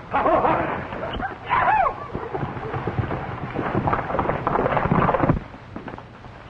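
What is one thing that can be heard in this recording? Men shout excitedly in a crowd.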